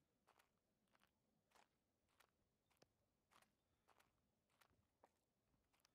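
Footsteps crunch steadily on a gravel path.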